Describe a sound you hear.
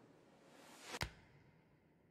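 An apple lands with a slap in a hand.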